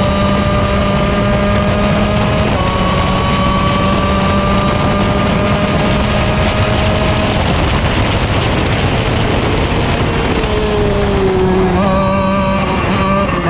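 Wind rushes past in a loud roar.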